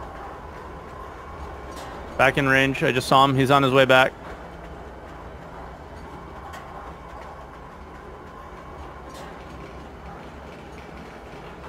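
A train hums and rumbles steadily as it rolls along.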